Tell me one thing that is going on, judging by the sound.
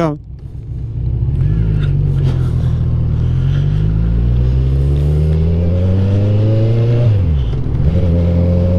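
A motorcycle engine revs up, rising steadily in pitch as it accelerates, then drops briefly when changing gear.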